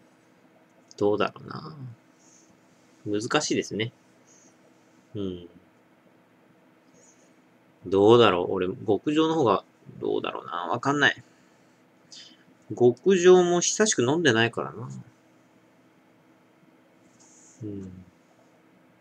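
A man speaks close by in short bursts, with pauses.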